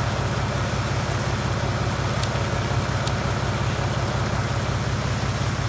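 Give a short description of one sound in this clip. A tractor engine idles with a low, throbbing rumble.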